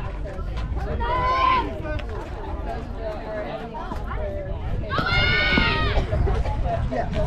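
A young woman shouts with high excitement.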